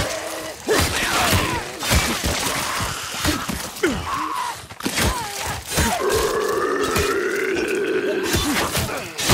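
Creatures snarl and shriek close by.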